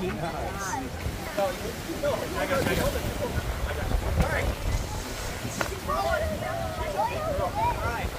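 A large alligator thrashes and scrapes across dry dirt.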